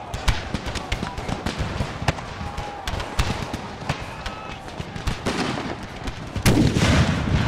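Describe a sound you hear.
Musket volleys crackle and pop in the distance.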